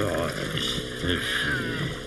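A cartoon man grunts with effort.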